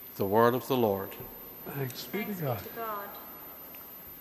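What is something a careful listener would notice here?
An elderly man speaks calmly into a microphone in a large echoing hall.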